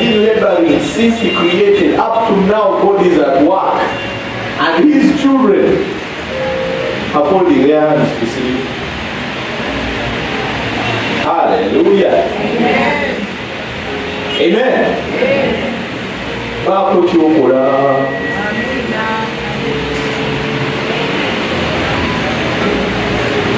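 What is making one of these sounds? A man preaches with animation into a microphone through loudspeakers in an echoing hall.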